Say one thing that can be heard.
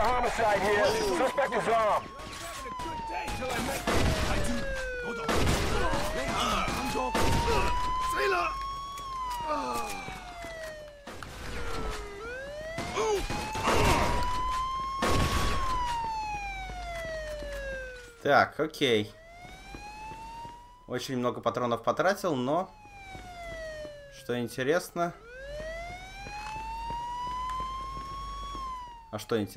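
A police siren wails steadily, rising and falling.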